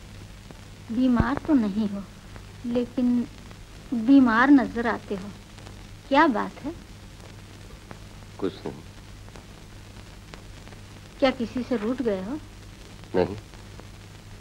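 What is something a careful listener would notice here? An elderly woman speaks gently, close by.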